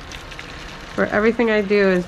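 Water pours from a kettle into a container.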